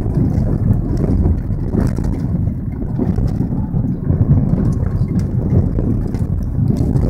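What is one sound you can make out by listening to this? Small stones click against the underside of the car.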